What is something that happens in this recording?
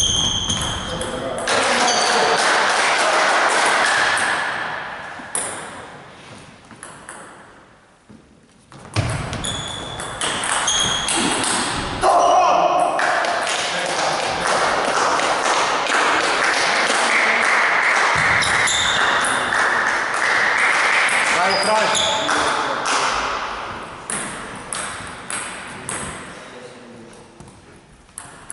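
A table tennis ball clicks sharply off paddles and the table, echoing in a large hall.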